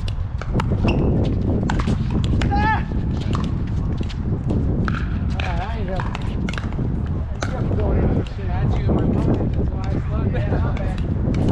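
Paddles smack a plastic ball back and forth in quick, sharp pops.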